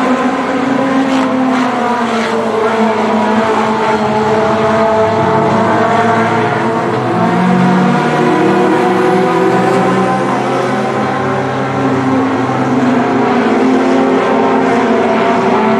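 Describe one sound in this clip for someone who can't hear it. Race car engines roar loudly and rise and fall in pitch.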